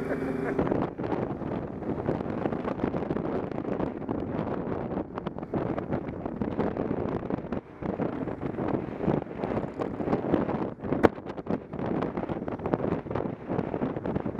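Strong wind buffets and roars against a microphone.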